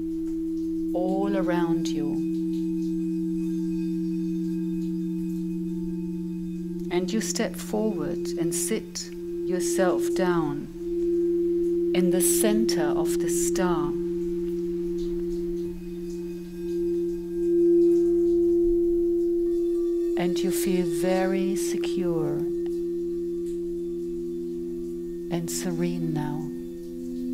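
A woman sings softly into a microphone in short phrases.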